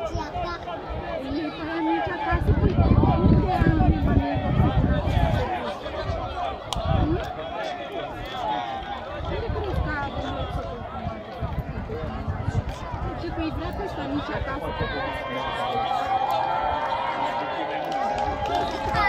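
A crowd of boys chatters and shouts outdoors.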